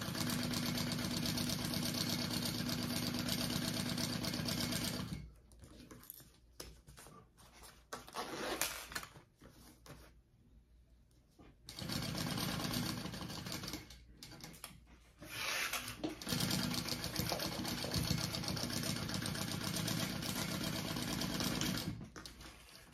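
A sewing machine stitches rapidly in bursts.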